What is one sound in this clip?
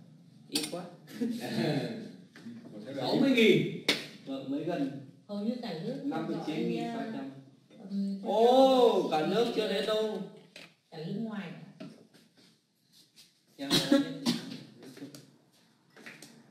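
A middle-aged woman speaks with animation, close to a phone microphone.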